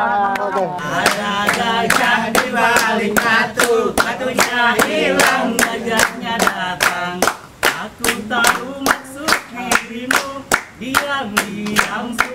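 A group of men sing loudly together.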